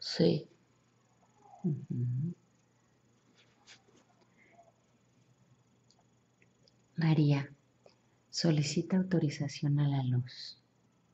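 A young woman speaks softly in short bursts close by.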